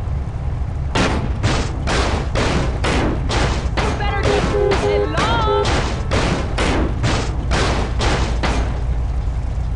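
Heavy blows thud rapidly against a car body.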